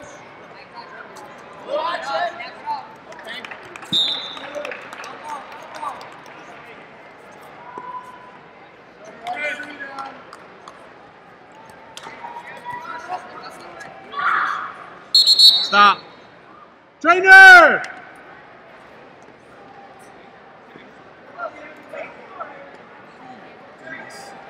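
Adults shout from the sidelines in a large echoing hall.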